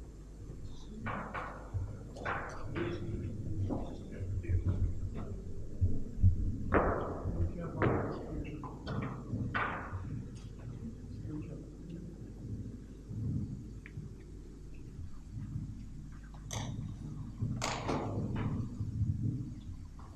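A man speaks calmly into a microphone, heard through loudspeakers in an echoing hall.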